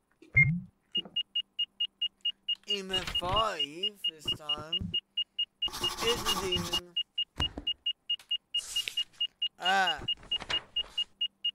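An electronic detector beeps rapidly and steadily.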